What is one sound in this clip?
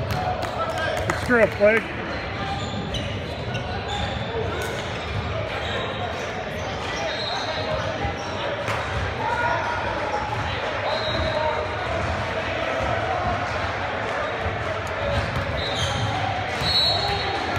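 A basketball bounces on a gym court floor.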